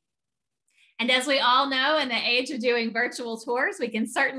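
A young woman speaks warmly over an online call.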